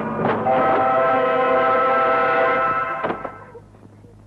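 A woman screams loudly.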